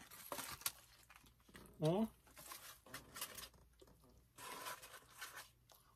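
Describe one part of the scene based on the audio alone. Cardboard takeout boxes rustle and crinkle as they are handled.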